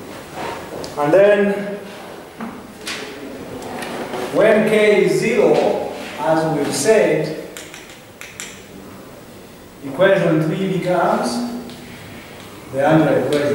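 A man speaks calmly in a room with echo.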